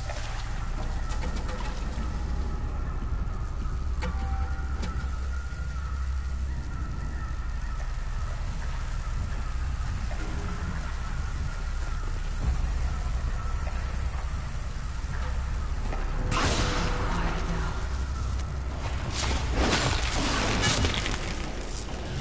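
Leaves and tall grass rustle as someone moves through them.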